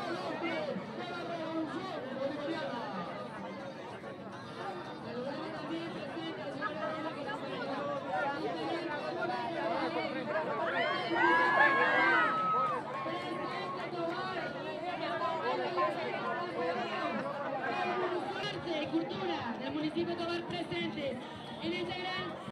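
A crowd chatters and calls out all around.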